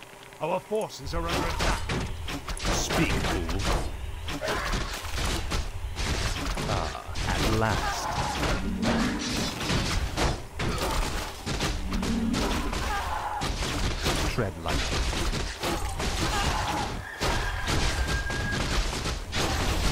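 Swords clash and spells burst in a fantasy battle.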